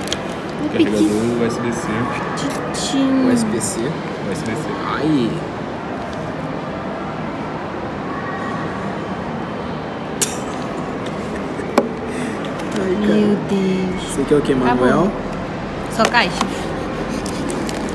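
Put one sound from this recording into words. Cardboard packaging scrapes and rustles.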